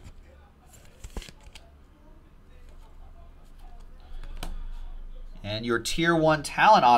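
Plastic card holders click and rustle in a hand.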